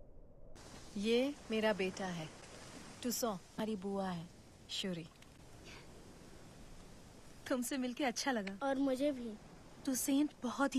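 A woman speaks softly and warmly, close by.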